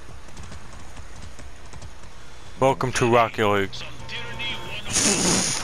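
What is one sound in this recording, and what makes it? A horse's hooves clop on a dirt road.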